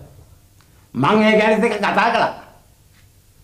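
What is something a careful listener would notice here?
An older man speaks in a raised, lively voice, close by.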